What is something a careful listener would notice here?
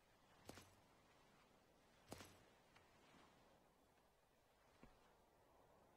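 Footsteps thud softly on hard ground.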